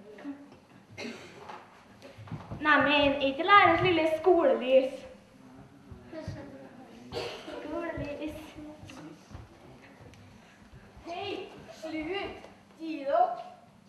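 Children sing and call out together in a large hall.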